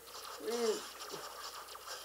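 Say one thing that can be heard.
Electric zaps crackle loudly.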